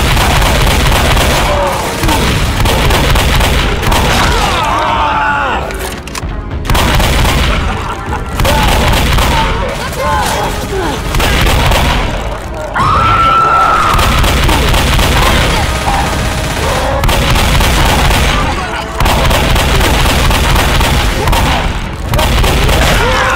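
Shotgun blasts boom again and again.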